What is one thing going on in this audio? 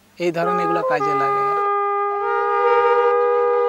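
Long horns blow loud, steady, droning notes together.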